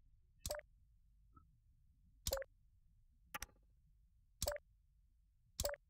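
Short electronic clicks sound as parts snap into place.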